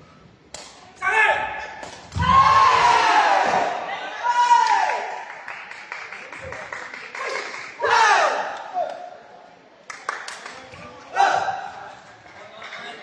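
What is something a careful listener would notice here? Young men shout and cheer loudly nearby.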